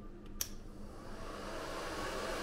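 A hair dryer blows with a steady whoosh.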